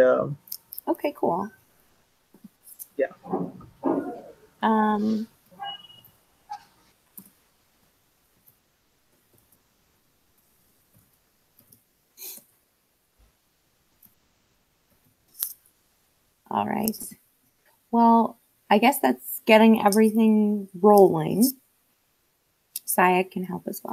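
A woman talks calmly through an online call.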